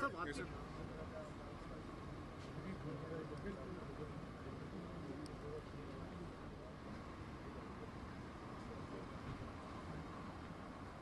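Men talk quietly nearby in a street.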